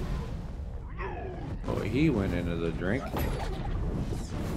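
A magic spell swirls with a rising whoosh.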